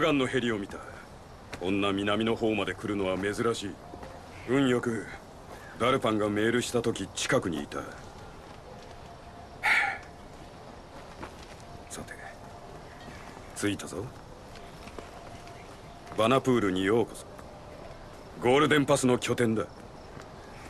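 A young man speaks calmly and close by, in short phrases with pauses.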